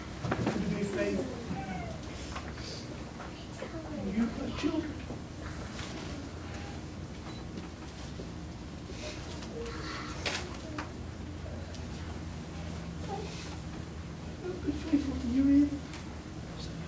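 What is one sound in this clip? A middle-aged man speaks calmly in an echoing hall.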